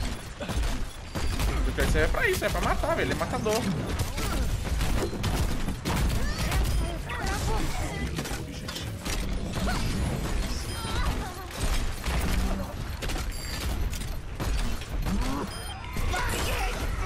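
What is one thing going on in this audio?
Heavy gunfire rattles in rapid bursts.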